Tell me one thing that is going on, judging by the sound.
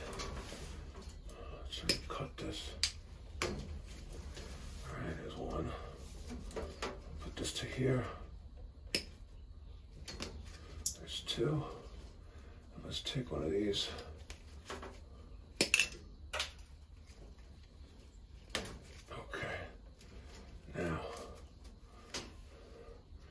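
Pliers click and snip at wires.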